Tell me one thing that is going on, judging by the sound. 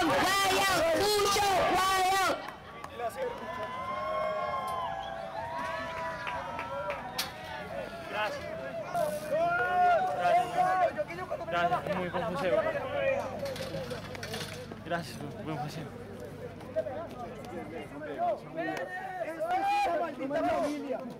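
A group of young men cheer and shout outdoors.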